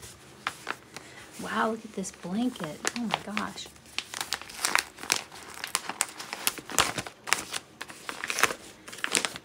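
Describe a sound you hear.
Wrapping paper crinkles and rustles as it is handled.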